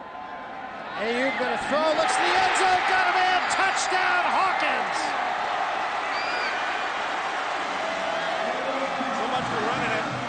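A large stadium crowd suddenly roars and cheers loudly.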